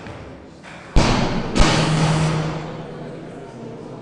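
Spectators cheer in a hall.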